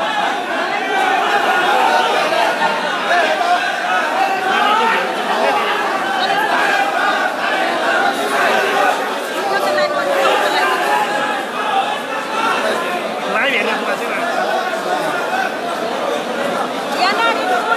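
A dense crowd of men and women shouts and chants loudly close by.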